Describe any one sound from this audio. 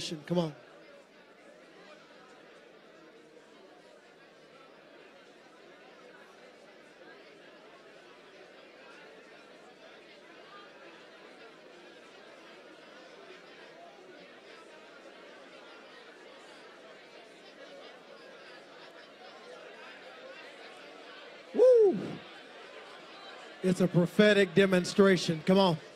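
A crowd murmurs and calls out softly.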